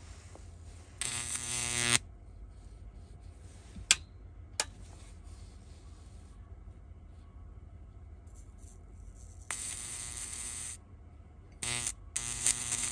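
An electrical connection buzzes loudly in short bursts.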